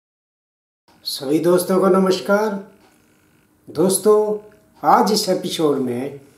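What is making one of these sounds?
An elderly man speaks calmly and close by.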